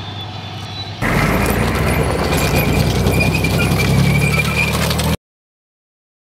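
Tank tracks clatter over gravel.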